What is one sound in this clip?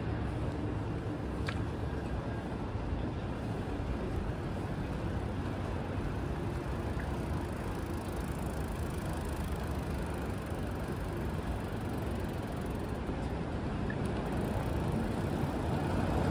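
Footsteps tap on a paved sidewalk close by.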